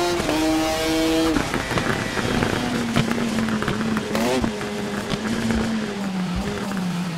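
A motorcycle engine revs high and shifts gears.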